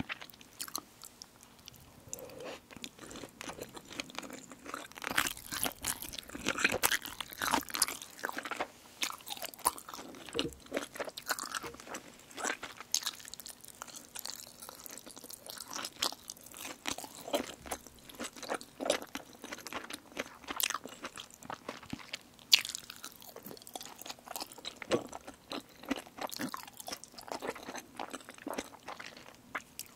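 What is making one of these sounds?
A young woman chews food wetly close to a microphone.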